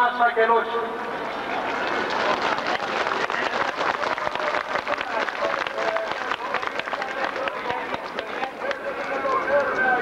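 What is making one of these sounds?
A crowd claps and cheers.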